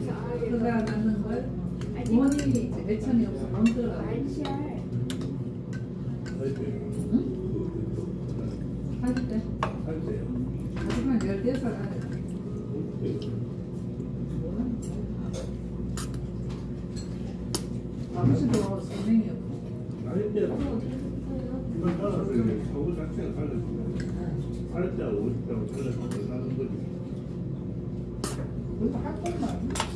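Chopsticks click against a dish.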